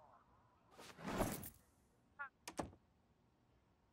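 A door creaks open and thuds shut.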